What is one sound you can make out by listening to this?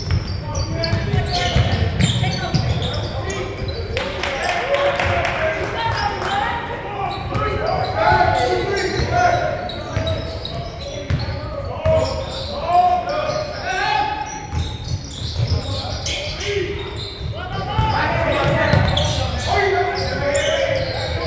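Young men shout and call out across an echoing court.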